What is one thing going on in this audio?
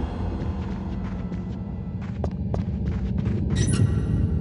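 Footsteps tap softly across a wooden floor.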